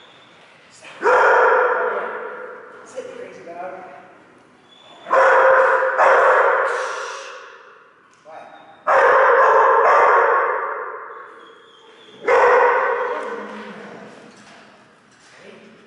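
A dog barks loudly, echoing around a large hall.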